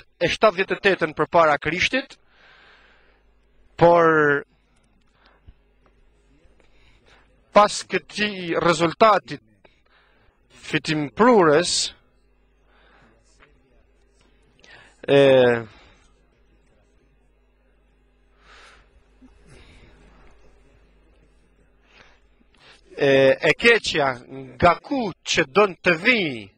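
A middle-aged man speaks with animation through a microphone, with pauses between phrases.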